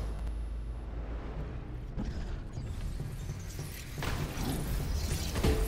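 Footsteps run on a metal floor.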